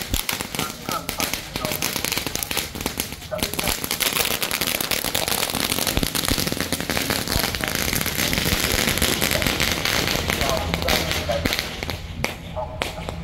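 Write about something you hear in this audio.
Firecrackers crackle and pop rapidly nearby.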